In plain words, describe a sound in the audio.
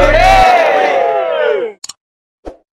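A group of men cheer loudly together.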